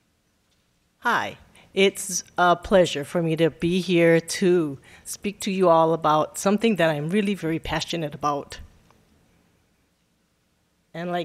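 A woman speaks calmly into a microphone in a large hall.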